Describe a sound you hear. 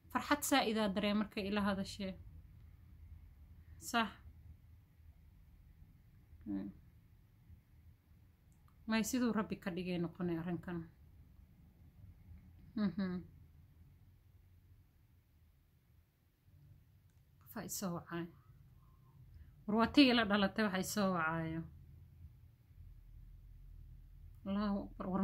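A young woman speaks calmly and close up, in short phrases with pauses.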